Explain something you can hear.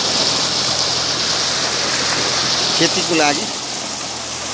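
Water gushes and splashes loudly through a channel.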